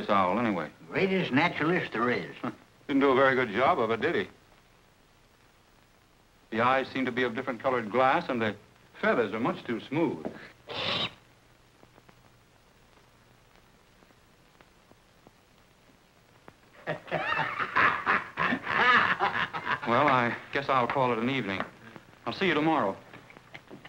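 A man speaks with animation, heard close.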